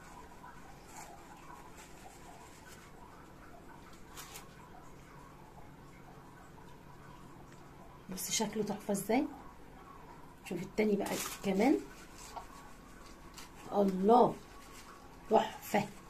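A paper tissue rustles softly in someone's hands.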